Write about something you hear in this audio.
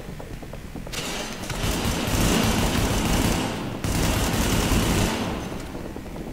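An assault rifle fires.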